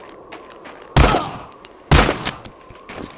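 A gun fires two loud shots.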